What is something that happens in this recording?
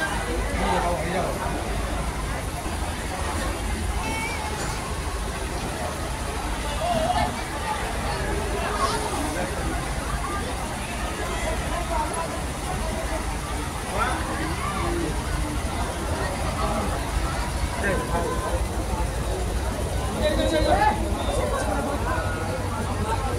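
A crowd of men murmurs and chatters nearby, outdoors.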